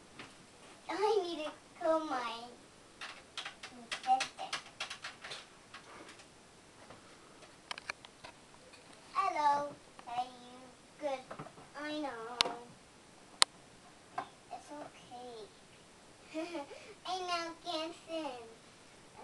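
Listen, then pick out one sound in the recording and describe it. A young girl talks in a high, sing-song voice close by.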